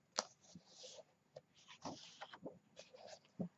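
A page of a book is turned with a soft papery rustle.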